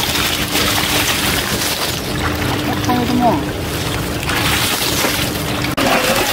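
Leafy water plants rustle as they are pulled from the mud.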